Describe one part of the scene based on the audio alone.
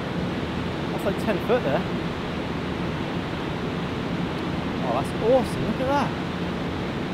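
A man exclaims with excitement nearby.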